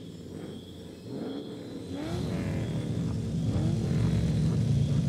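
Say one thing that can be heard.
A car engine revs up briefly a few times.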